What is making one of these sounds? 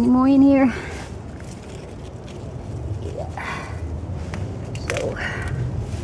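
Leafy plants rustle as a hand brushes through them.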